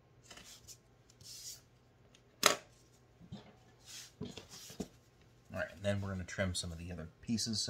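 Fabric rustles as it is handled.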